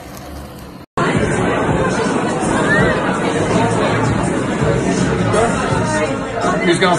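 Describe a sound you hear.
A crowd of people chatter in a busy, noisy room.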